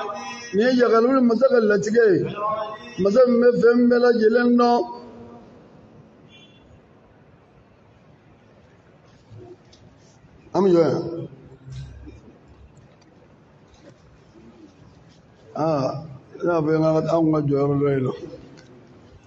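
A middle-aged man chants in a melodic voice through a microphone, with long pauses between phrases.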